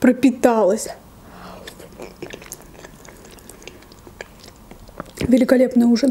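A young woman chews food wetly close to a microphone.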